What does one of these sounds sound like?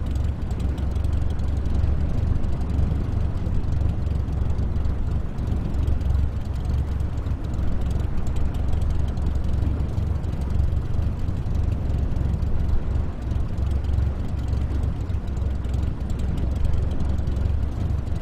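A small propeller plane's engine drones steadily while taxiing.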